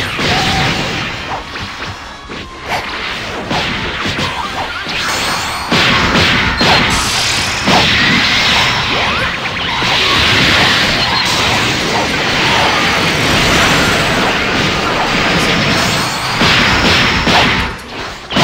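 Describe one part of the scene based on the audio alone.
Energy blasts whoosh and explode loudly.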